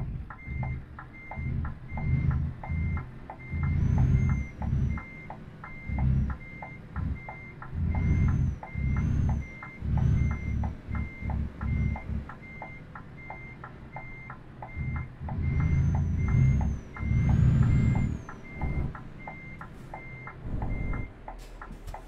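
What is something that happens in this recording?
A truck's turn signal ticks steadily and quickly.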